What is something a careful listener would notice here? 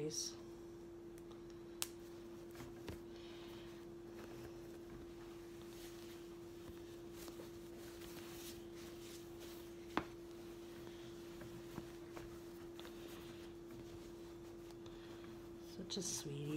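Hands rustle softly against a baby's clothes and padded seat.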